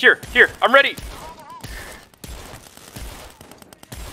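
An electric stun gun crackles and buzzes.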